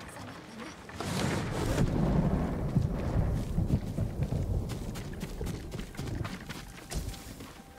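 Footsteps run over soft, wet ground outdoors.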